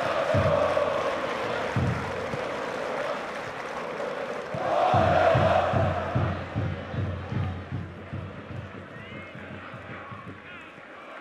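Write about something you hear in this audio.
A large stadium crowd roars and chants steadily, swelling loudly for a moment.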